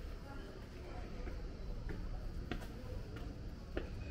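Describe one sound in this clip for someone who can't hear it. Footsteps tap on stone steps nearby.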